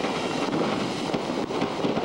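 A firework fountain hisses and crackles as it sprays sparks.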